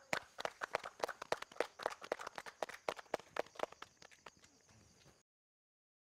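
A small group claps their hands.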